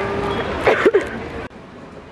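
A young woman fakes a cough close to a microphone.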